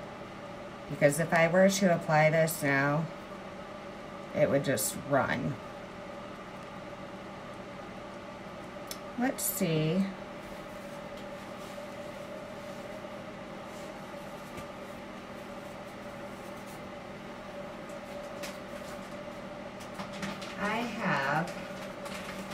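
A woman talks calmly nearby, in short bursts.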